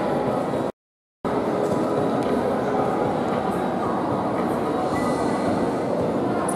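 A crowd of men and women chatters steadily in a large echoing hall.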